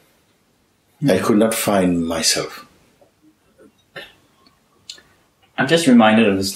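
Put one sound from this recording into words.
A middle-aged man speaks calmly and thoughtfully, close to the microphone.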